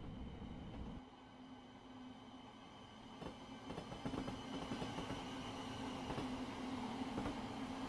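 An electric train rolls past outside with a rising hum and rattle.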